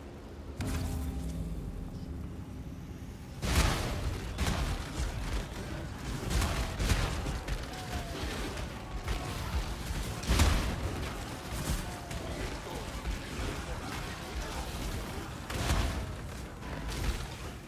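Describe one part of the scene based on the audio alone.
Spells blast and explode in rapid bursts.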